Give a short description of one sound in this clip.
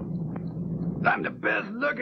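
A man speaks in a deep, theatrical voice.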